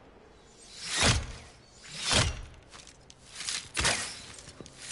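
Arrows thud into a target.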